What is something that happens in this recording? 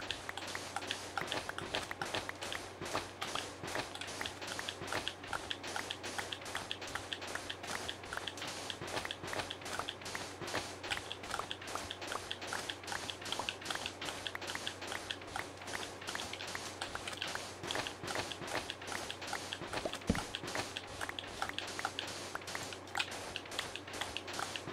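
Blocks of sand crunch quickly and repeatedly as they are dug away.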